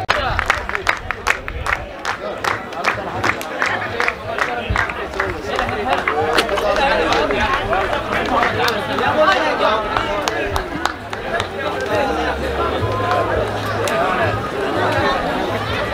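A crowd of people talk and call out all around.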